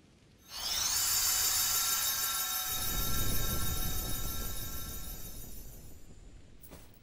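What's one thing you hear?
A bright magical burst roars and shimmers, then slowly fades.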